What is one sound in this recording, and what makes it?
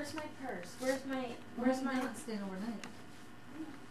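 A woman talks nearby in a lively, high voice.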